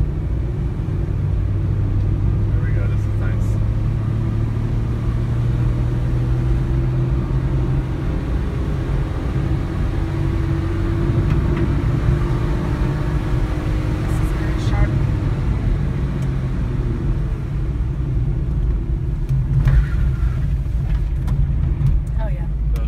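Tyres roll on asphalt, heard from inside a car.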